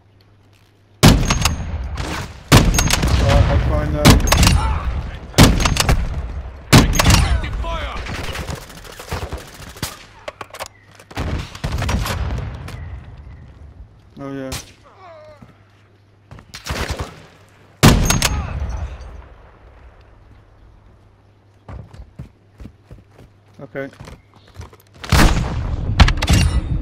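Sniper rifle shots crack loudly and echo away.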